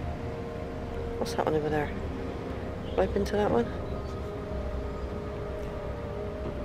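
A spaceship engine drones with a low, steady hum.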